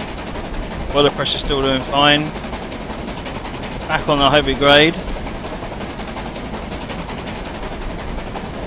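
A steam locomotive rumbles steadily along the tracks.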